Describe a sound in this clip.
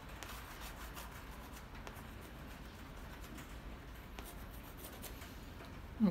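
A paintbrush scrapes and dabs softly on paper.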